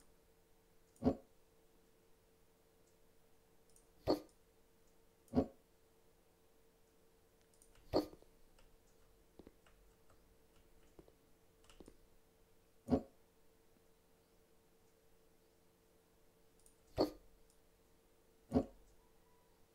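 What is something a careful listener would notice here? Furniture clicks into place with short sharp knocks.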